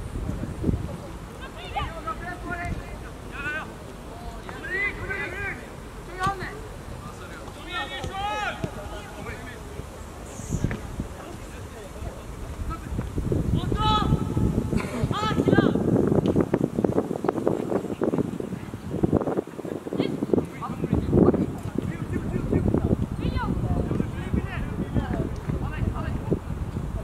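Young players shout to each other across an open field in the distance.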